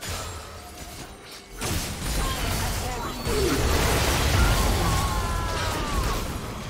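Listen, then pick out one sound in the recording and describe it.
Game spell effects whoosh and crackle in a busy fight.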